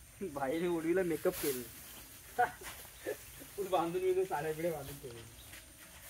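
A man talks loudly nearby, outdoors.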